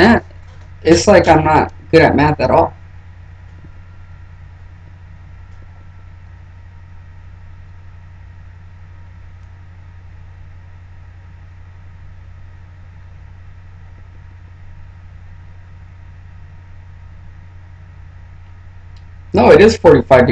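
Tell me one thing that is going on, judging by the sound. A man speaks calmly close to a microphone, in short bursts.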